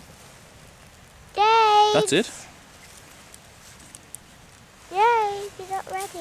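Dry grass crackles softly as a small flame catches.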